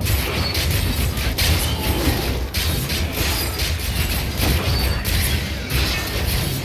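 Game combat effects clash and crackle as creatures are struck.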